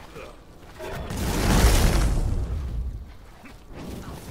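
A loud whooshing blast swells and fades.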